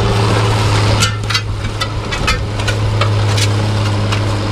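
A disc harrow rattles and clanks over rough soil.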